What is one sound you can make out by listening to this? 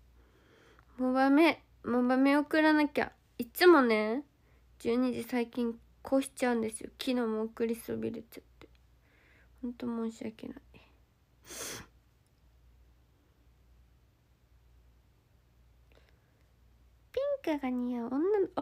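A young woman speaks softly and playfully close to a phone microphone.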